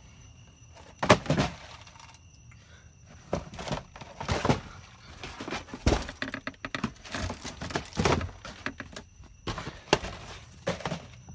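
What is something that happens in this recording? Cardboard boxes rustle and knock as they are handled.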